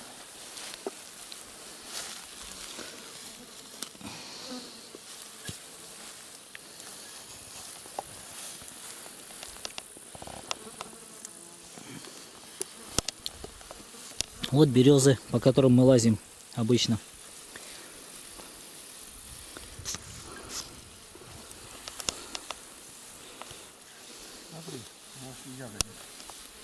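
Grass rustles as people move through it.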